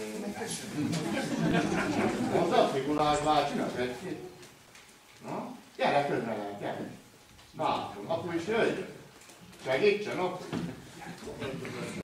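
A man speaks warmly and gently to a small child close by.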